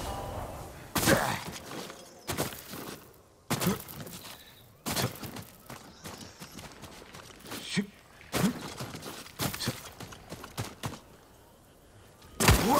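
A climber scrambles and thuds against rock in quick bursts.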